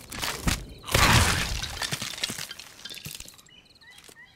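Bones clatter and scatter across the ground.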